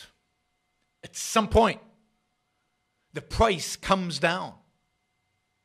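An older man speaks calmly and close into a microphone.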